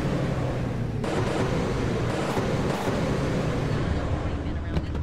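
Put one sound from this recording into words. A car engine rumbles as the car drives.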